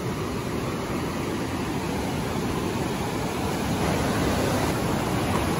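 Rushing white water roars and churns steadily.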